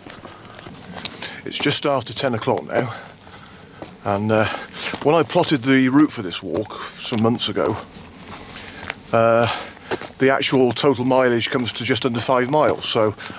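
A middle-aged man talks calmly and close by outdoors.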